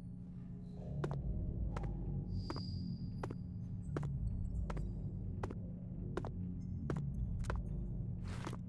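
Footsteps tap on a hard floor at a steady pace.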